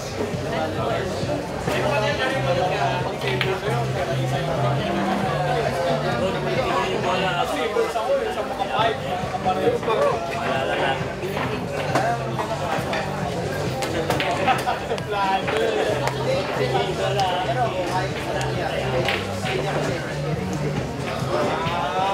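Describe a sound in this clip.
A crowd of men chatters indoors.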